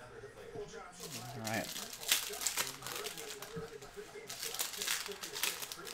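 Plastic wrappers crinkle as packs are torn open.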